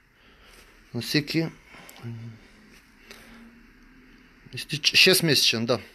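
A man speaks with animation very close to a phone microphone.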